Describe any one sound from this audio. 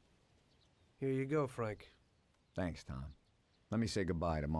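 A man speaks calmly through a recording.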